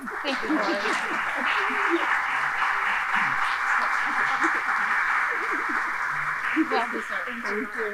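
Women chat and laugh cheerfully close by.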